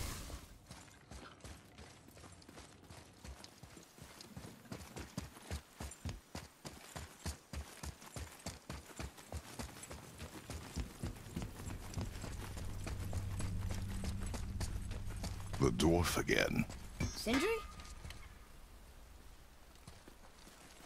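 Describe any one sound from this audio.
Footsteps thud quickly on stone as a man runs.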